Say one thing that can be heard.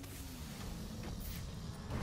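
Smoke hisses out of a canister.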